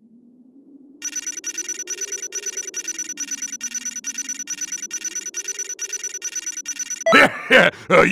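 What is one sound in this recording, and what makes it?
A counter ticks rapidly and steadily.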